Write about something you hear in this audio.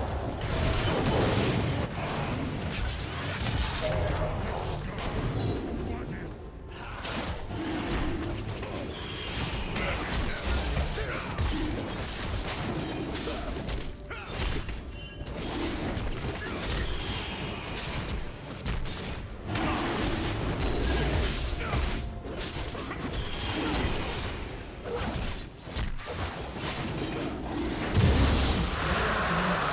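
Game spell effects whoosh, crackle and burst in quick succession.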